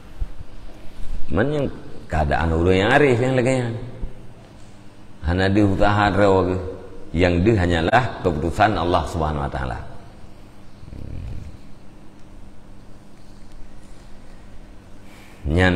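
Paper pages rustle as they are turned.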